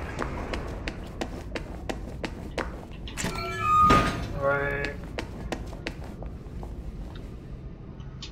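Footsteps tap on a hard floor in an echoing corridor.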